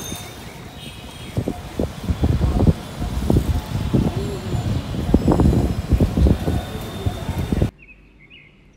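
Light traffic rumbles along a city street outdoors.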